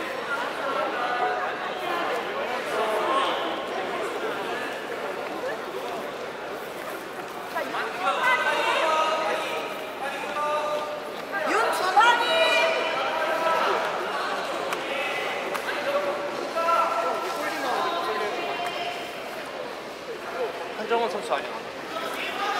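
Young men and women shout and call out loudly nearby, in a large echoing hall.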